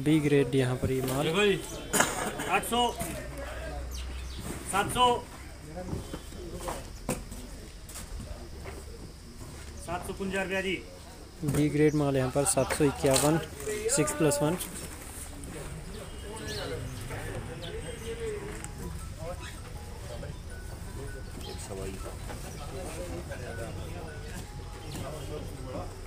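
Cardboard boxes rustle as apples are handled.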